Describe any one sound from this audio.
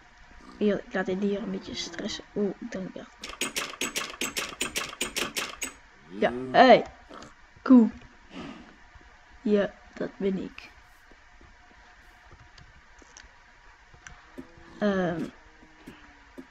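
A boy talks with animation, close to a microphone.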